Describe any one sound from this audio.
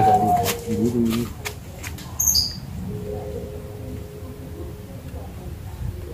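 Leaves rustle as a man handles a tree's branches.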